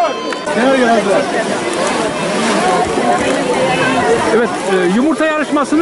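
Many children chatter and shout nearby outdoors.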